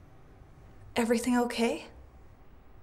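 A woman speaks briefly nearby.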